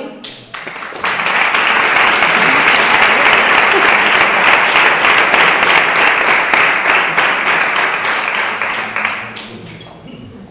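A crowd applauds loudly in an echoing hall.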